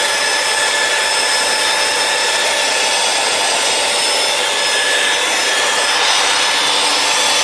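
An electric polisher whines steadily at close range.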